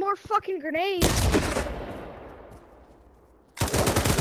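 An automatic rifle fires a burst.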